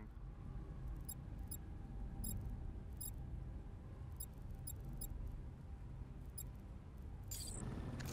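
Soft electronic clicks tick in quick succession.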